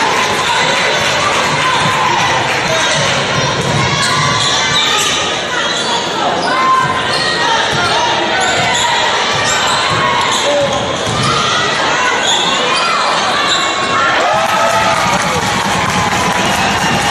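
A crowd cheers and chatters in a large echoing gym.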